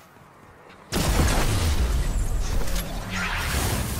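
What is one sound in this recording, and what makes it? A loud blast bursts and crackles.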